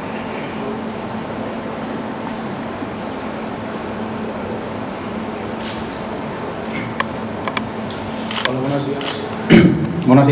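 A middle-aged man speaks with animation, heard through a loudspeaker in a large room.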